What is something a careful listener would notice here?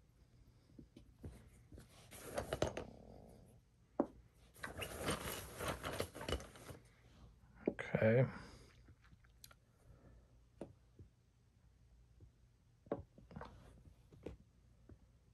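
Chess pieces tap and slide on a wooden board.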